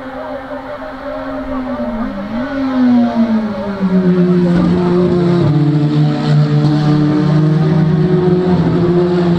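Small touring race cars race by at full throttle.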